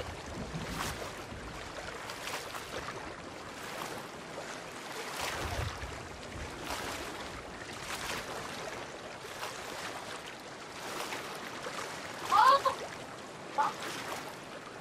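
Rough ocean waves surge and crash, with water splashing steadily.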